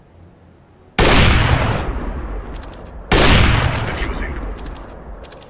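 A sniper rifle fires loud booming shots that echo away.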